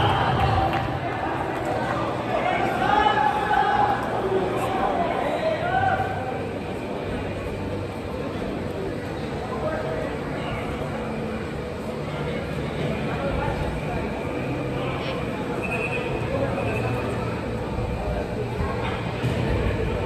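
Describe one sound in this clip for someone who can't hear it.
Young men shout and call out across a large echoing indoor hall.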